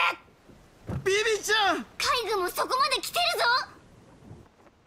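A man shouts excitedly.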